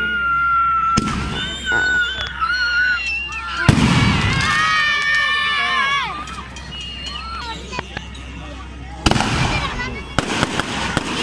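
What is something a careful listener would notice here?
Fireworks burst with loud bangs.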